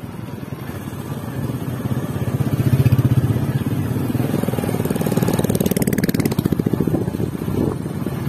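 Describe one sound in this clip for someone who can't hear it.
Another motorcycle engine hums a little way ahead.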